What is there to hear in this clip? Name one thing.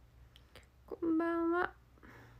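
A young woman close to a phone microphone lets out a short, drawn-out vocal sound.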